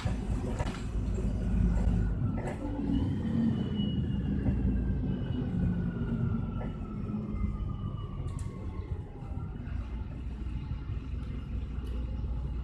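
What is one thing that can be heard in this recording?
Rattles and knocks come from inside the bus.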